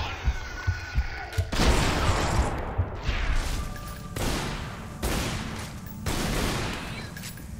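Pistol shots ring out in quick bursts, echoing through a large stone hall.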